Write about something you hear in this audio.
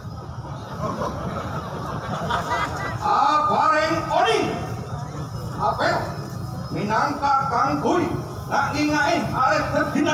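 A man speaks through a loudspeaker outdoors.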